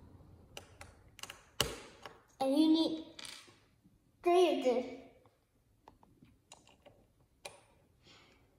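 Plastic toy bricks click and clatter on a wooden table.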